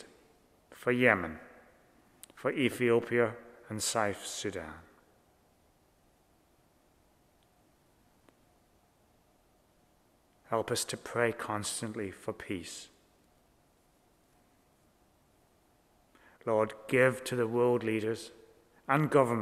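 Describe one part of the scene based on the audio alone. An older man speaks slowly and calmly through a microphone in an echoing room, with long pauses.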